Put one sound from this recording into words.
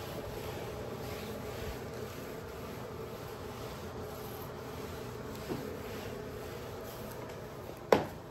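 A mop swishes across a tiled floor.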